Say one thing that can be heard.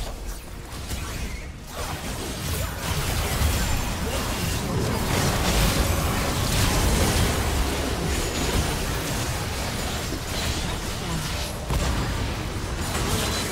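Spell blasts and impacts crackle and boom in a fast fight.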